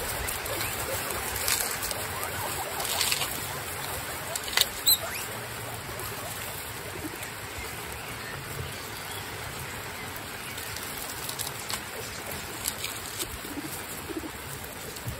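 Guinea pigs munch and crunch on lettuce leaves.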